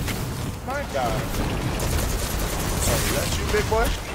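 Explosions from a game boom loudly.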